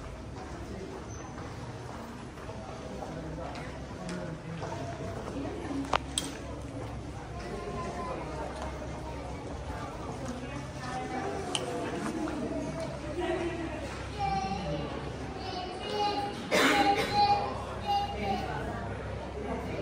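Visitors chatter faintly in the distance, in an open, echoing walkway.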